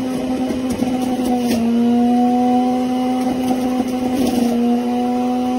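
Small knocks rattle inside a juicer as it grinds produce.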